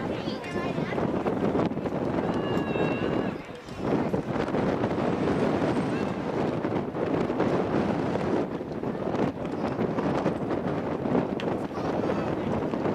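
Young men call out to each other across an open field, heard from a distance.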